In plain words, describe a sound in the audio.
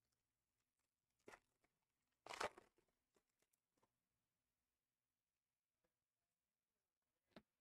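Cards rustle softly as they are handled.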